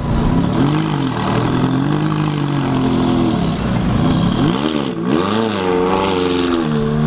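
Tyres squeal on tarmac as a car spins.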